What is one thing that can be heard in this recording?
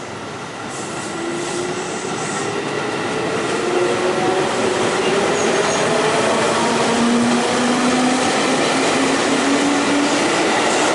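An electric train's motors whine, rising steadily in pitch as it pulls away.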